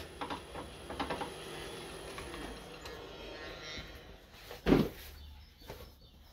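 Metal parts clink together as a drill chuck is fitted into a lathe.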